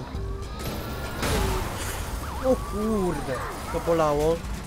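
A police siren wails nearby.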